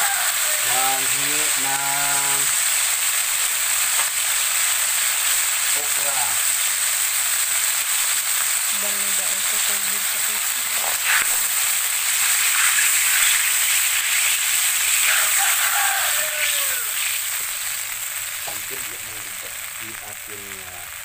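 Hot oil sizzles and crackles steadily in a pan, fading toward the end.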